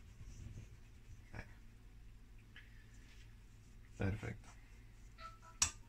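A metal sieve taps and rattles over a bowl.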